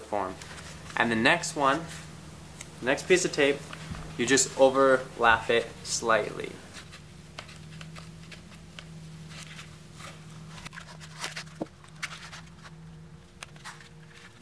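Plastic parts click and rub softly as they are pressed together.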